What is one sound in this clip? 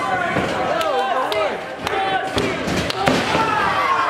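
A body slams onto a wrestling ring mat with a thud.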